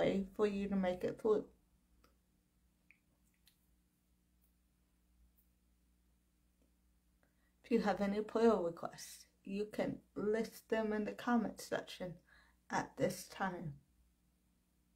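A young woman speaks calmly and close up, with pauses.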